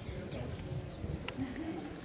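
Water trickles in thin streams onto wet pebbles.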